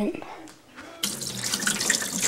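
Tap water pours out in a steady stream.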